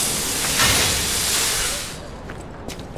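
Sparks crackle as a blade scrapes against stone.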